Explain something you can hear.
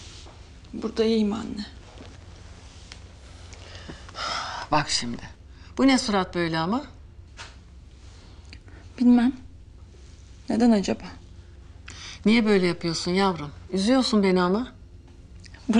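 An elderly woman speaks calmly and earnestly, close by.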